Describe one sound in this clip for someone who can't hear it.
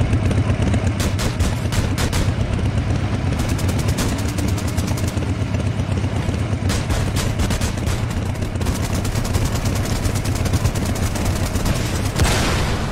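Rapid gunfire bursts out in quick rattling volleys.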